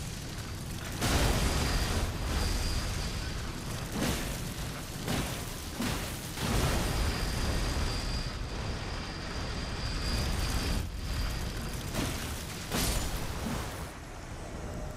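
A huge creature crashes and rumbles in a loud fight.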